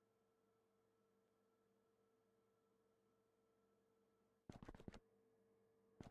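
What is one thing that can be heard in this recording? Machines hum steadily and faintly.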